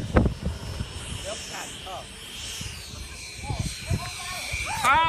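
A radio-controlled model airplane whines by far off.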